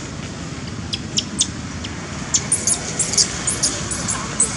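A baby monkey squeals in short, high cries.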